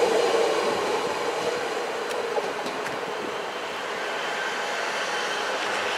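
A distant train hums faintly as it approaches.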